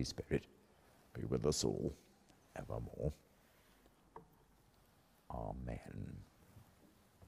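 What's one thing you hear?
An elderly man speaks slowly and solemnly in an echoing hall.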